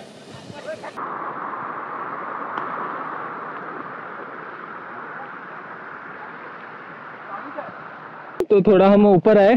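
Water rushes over rocks in a steady stream.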